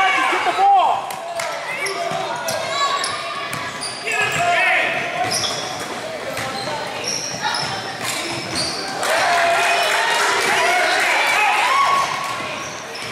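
Sneakers squeak sharply on a hard court floor in a large echoing gym.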